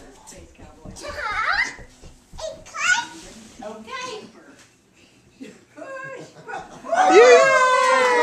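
A toddler babbles and squeals in a high voice.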